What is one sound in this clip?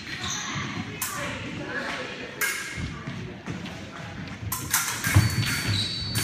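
Steel blades clash and scrape.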